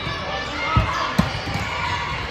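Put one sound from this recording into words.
A volleyball is served with a sharp slap.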